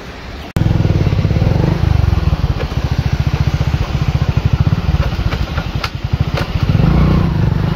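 Water rushes through sluice gates.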